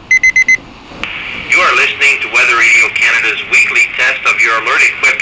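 A small radio loudspeaker plays a tinny broadcast voice.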